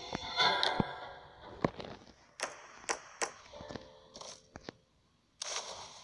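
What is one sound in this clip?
Game sound effects chime and click as a small figure moves about.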